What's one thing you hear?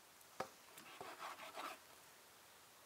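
A knife cuts through raw meat on a wooden board.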